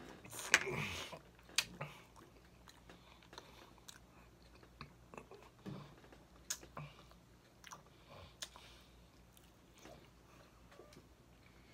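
A man chews food wetly and smacks his lips close to a microphone.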